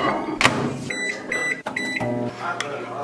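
A microwave beeps several times.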